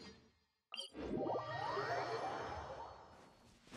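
A magical shimmering chime rises.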